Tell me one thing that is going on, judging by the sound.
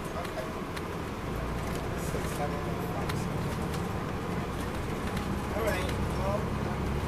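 A diesel coach bus engine drones, heard from inside while riding.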